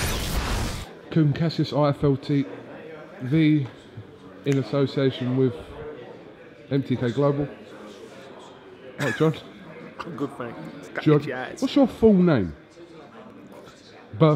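A middle-aged man speaks with animation close by.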